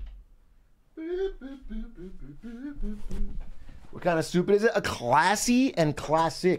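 A young man speaks close to a microphone, with animation.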